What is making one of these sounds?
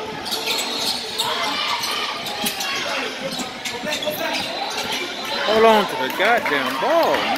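Young players and spectators shout and chatter in an echoing hall.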